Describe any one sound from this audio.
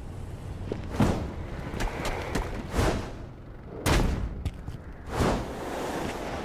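Heavy thuds land one after another.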